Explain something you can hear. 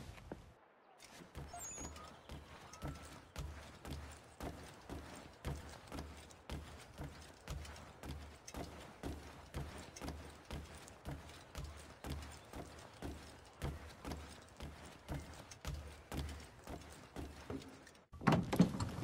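Footsteps thud steadily on wooden floorboards and stairs.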